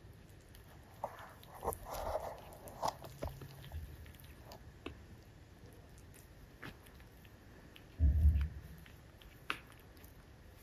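A puppy's paws scratch and shuffle on a cloth.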